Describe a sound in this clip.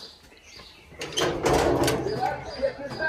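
A metal door creaks and scrapes open.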